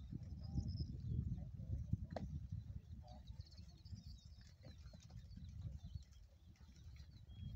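Goats munch and nibble on hay close by.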